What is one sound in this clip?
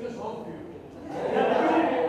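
An elderly man talks close by.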